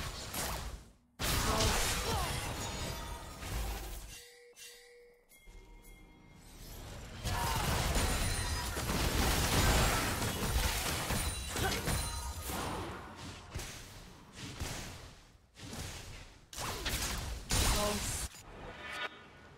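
Video game spells and weapon blows burst and clash in a busy fight.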